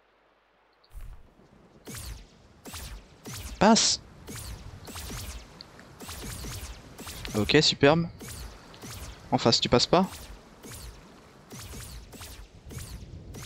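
Magical zaps and chimes sound in quick bursts.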